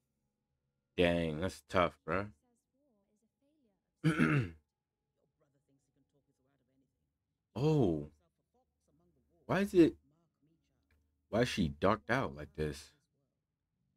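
A young man speaks in short bursts close to a microphone.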